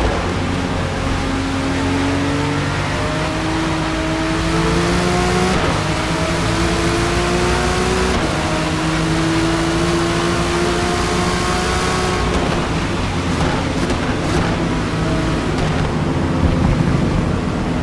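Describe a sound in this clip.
A racing car engine roars and climbs through the gears, then drops as the car slows.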